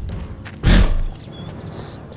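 An energy blast bursts with a loud whoosh.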